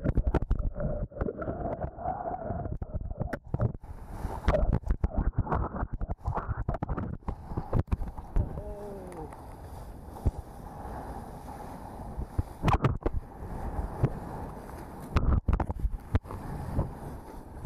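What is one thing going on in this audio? Water splashes and rushes around a board skimming the waves.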